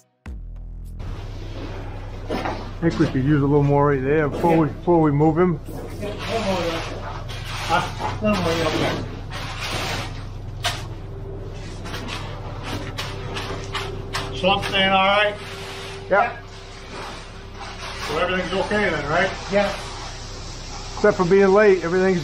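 Wet concrete slides and pours down a metal chute.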